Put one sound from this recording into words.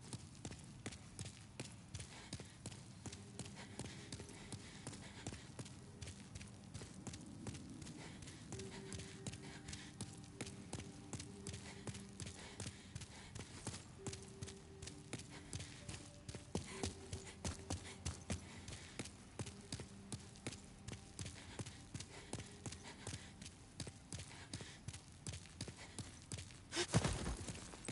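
Footsteps run quickly across a stone floor in a large echoing hall.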